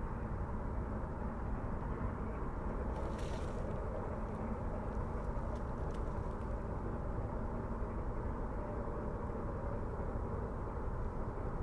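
A steam locomotive hisses and chuffs steadily in the distance.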